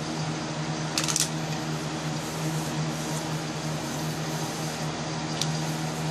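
Sheets of paper rustle and slide against each other.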